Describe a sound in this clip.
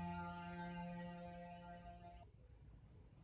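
An electric bass guitar holds a ringing note that cuts off.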